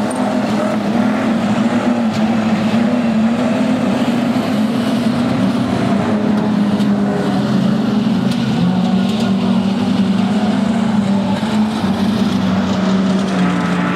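Race car engines roar and drone steadily nearby.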